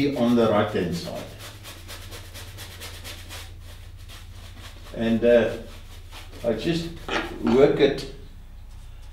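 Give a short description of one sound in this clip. An elderly man talks calmly, close to a microphone.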